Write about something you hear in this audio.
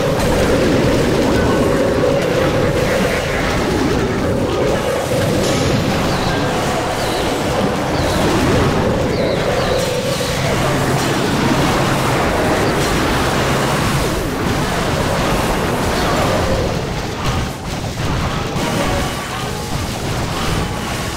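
Battle sound effects crash, zap and boom without a break.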